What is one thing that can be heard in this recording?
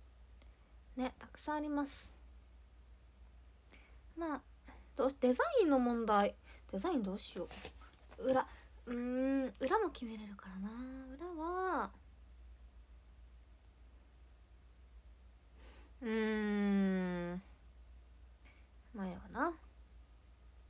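A young woman speaks softly and close to a microphone, in short bursts with pauses.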